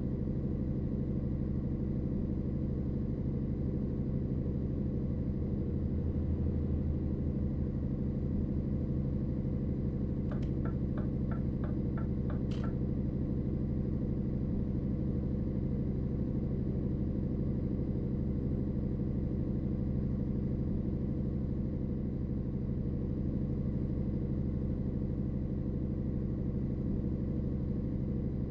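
A truck engine hums steadily at a low pitch.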